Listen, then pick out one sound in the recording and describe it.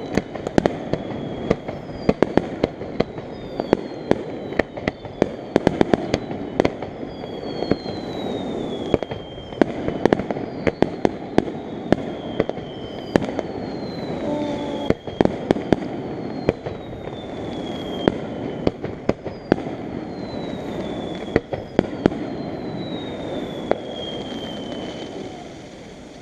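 Fireworks whistle with a falling pitch.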